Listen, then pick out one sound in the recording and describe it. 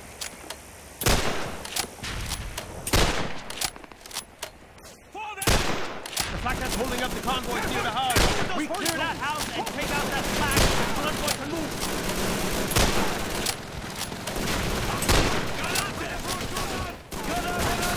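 Rifle shots crack one after another.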